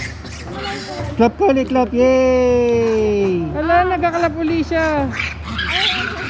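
A monkey gives high, wavering coos.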